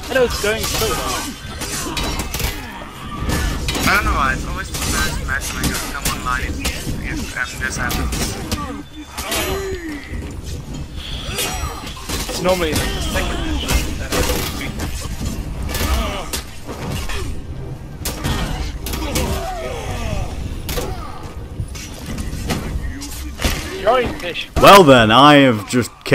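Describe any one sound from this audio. Metal weapons clash and clang rapidly in a chaotic melee.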